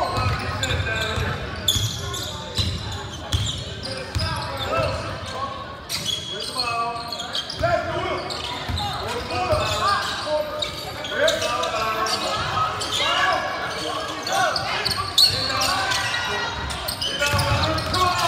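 A crowd of spectators cheers and shouts, echoing in a large hall.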